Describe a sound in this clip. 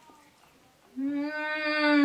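A young woman hums with pleasure.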